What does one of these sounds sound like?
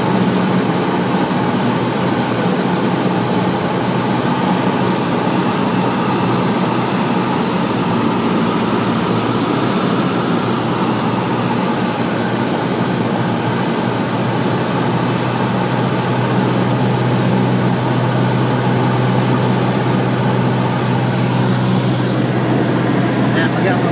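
A small plane's propeller engine drones loudly and steadily from inside the cabin.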